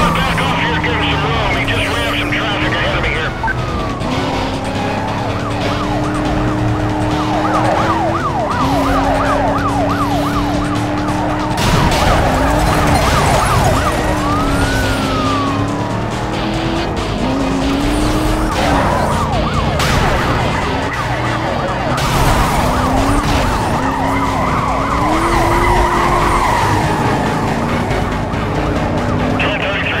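A car engine roars steadily at high speed, shifting up and down in pitch.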